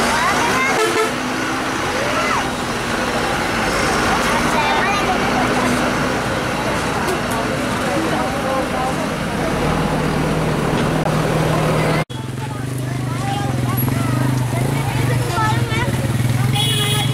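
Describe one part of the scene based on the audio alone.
A heavy truck engine rumbles steadily nearby.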